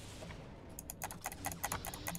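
A lightsaber swings with a humming buzz and clashes.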